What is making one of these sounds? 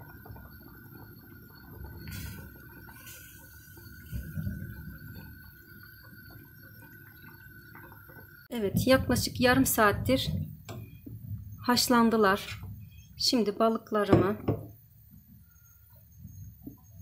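Soup bubbles and simmers in a pot.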